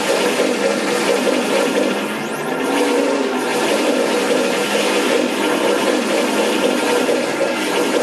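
Magic blasts whoosh and crackle during a fight.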